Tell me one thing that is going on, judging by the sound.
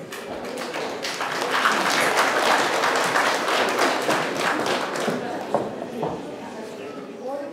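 An audience claps and cheers in a large hall.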